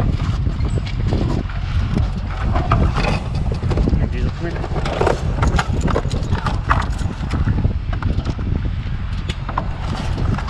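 A metal step clanks as it is unfolded and set down.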